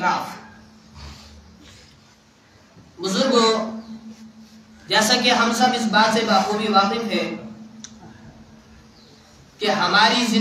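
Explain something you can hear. A man speaks calmly in bursts, close by, in an echoing room.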